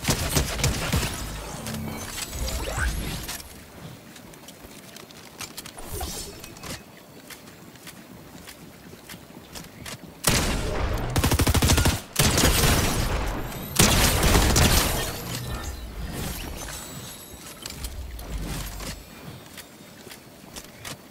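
Gunshots fire in quick bursts from a video game.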